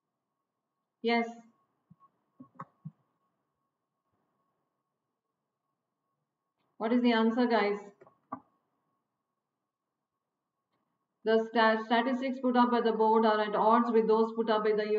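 A middle-aged woman speaks calmly and closely into a microphone, in short bursts.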